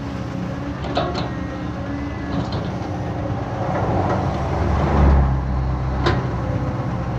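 An excavator bucket clanks against metal.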